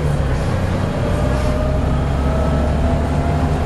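A bus's engine whines, rising slowly in pitch as it speeds up.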